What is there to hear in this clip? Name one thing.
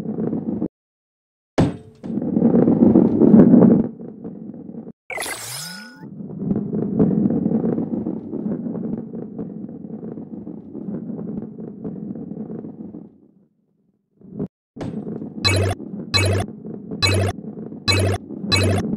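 A ball rolls along a wooden track with a low rumble.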